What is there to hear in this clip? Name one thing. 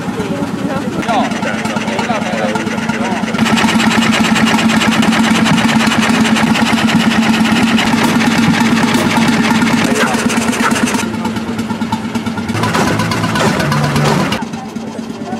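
A stationary engine chugs steadily nearby.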